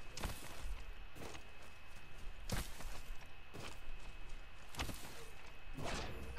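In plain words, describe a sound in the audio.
Footsteps thud on grass at a steady pace.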